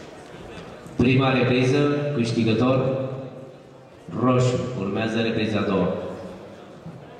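A man speaks close by in a large echoing hall.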